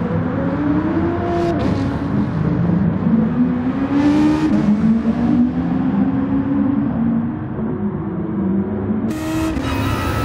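A race car engine roars, rising and falling in pitch as it speeds along.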